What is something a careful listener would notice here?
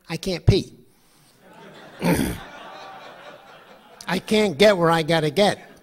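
A middle-aged man speaks calmly into a microphone through a loudspeaker.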